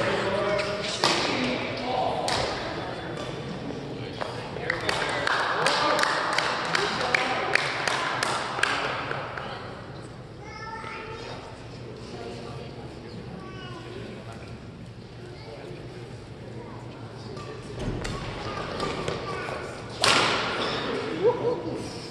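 Rackets strike a shuttlecock in a large echoing hall.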